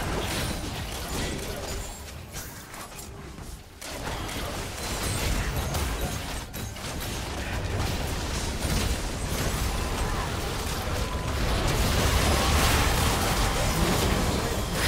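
Magic blasts and impacts crackle and boom in a hectic fight.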